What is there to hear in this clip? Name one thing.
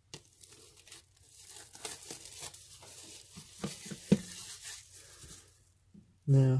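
Plastic wrap crinkles and rustles as it is peeled off.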